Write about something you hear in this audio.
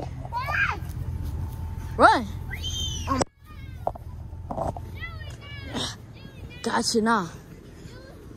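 A toddler squeals and babbles in a high voice close by.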